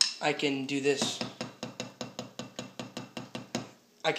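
Drumsticks tap quickly and evenly on a rubber practice pad.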